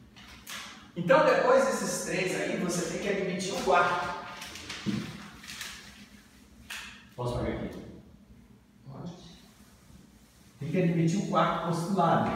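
A man lectures calmly in a room with a slight echo.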